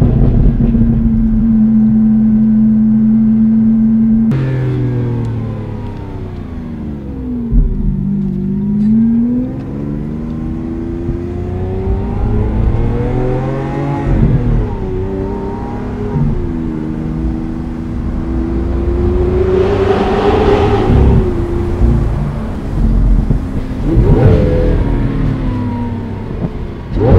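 A powerful car engine roars loudly from inside the car, rising and falling in pitch as it revs and shifts gears.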